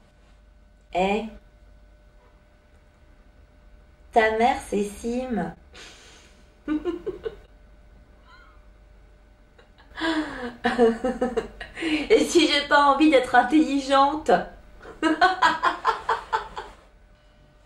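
A young woman speaks close by, playfully.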